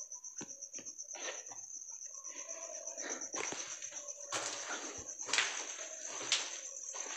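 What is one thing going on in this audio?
Footsteps crunch over gritty debris on a hard floor.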